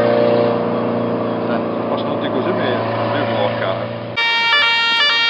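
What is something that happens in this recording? A rally car engine roars as the car speeds up the road.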